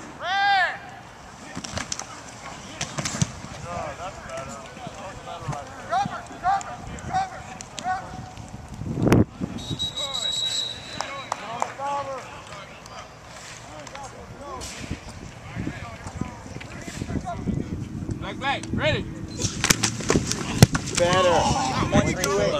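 Men shout and call out outdoors across an open field.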